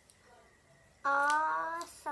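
A young girl sings a long, drawn-out note close by.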